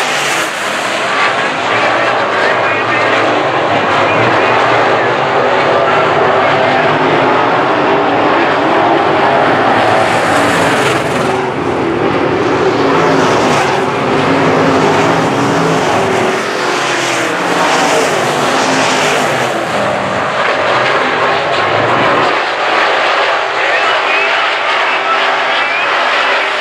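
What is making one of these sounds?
Race car engines roar loudly around a dirt track, outdoors.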